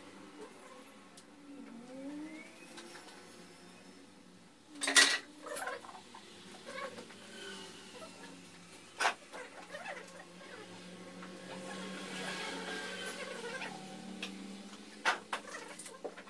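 Glass panes clink and knock against each other.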